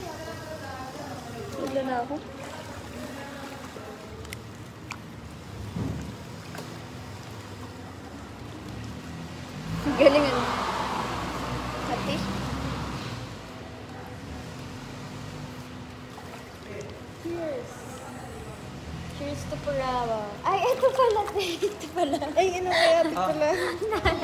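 A young woman speaks casually close to the microphone.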